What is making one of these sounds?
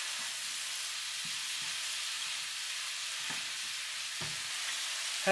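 A spoon scrapes and stirs vegetables in a pan.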